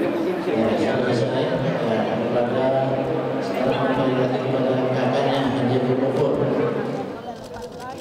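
A crowd of men and women chants together.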